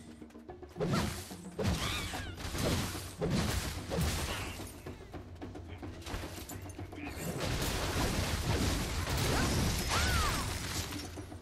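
Magic blasts whoosh sharply.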